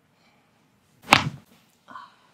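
A neck joint cracks with a sharp pop.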